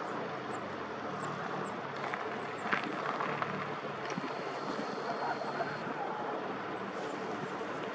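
Calm sea water laps gently against a stone breakwater.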